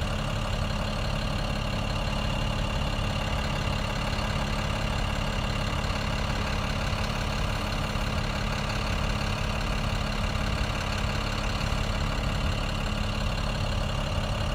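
City traffic rumbles past outdoors.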